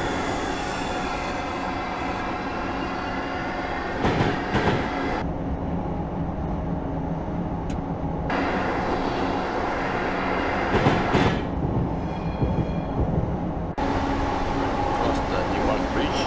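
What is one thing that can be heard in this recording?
Train wheels rumble and clatter over rail joints.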